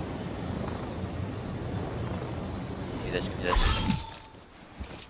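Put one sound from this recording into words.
Wind rushes steadily during a glide, then stops.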